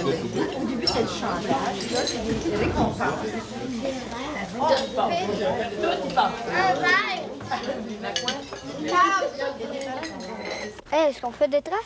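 Children chatter and talk around a busy table.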